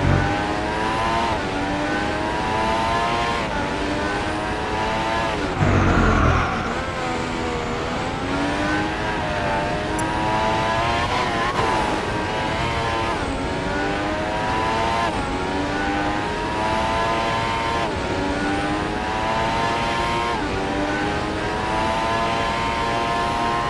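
A racing car engine screams, rising in pitch through each gear and dropping sharply at each shift.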